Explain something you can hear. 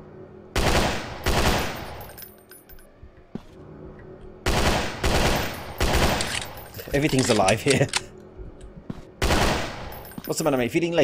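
Loud gunshots blast in quick bursts.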